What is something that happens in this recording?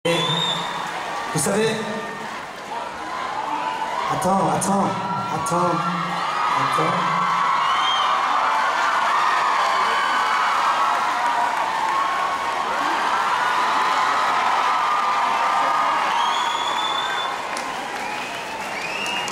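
A concert crowd cheers and screams.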